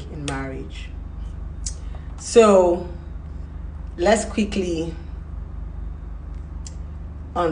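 A young woman speaks close by in short, expressive bursts with pauses.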